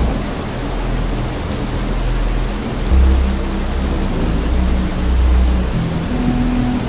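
A boat engine drones steadily nearby.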